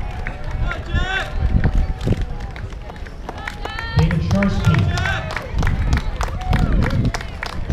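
A crowd of spectators cheers and whoops outdoors.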